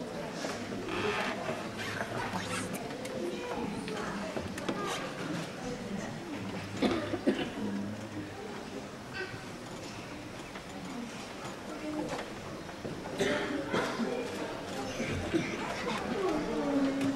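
A woman speaks theatrically on a stage, heard from a distance in a hall.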